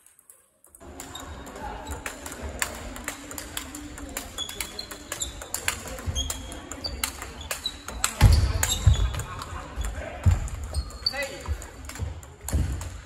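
A table tennis ball clicks back and forth off paddles and the table in a quick rally.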